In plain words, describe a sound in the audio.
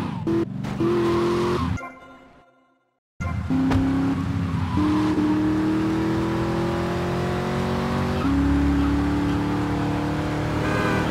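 A car engine roars and revs as the car speeds along.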